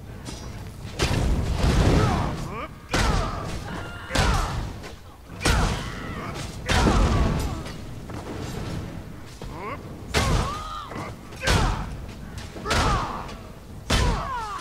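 Magic spells blast and crackle in a fight.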